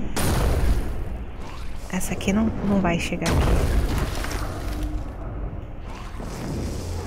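Shells whoosh through the air.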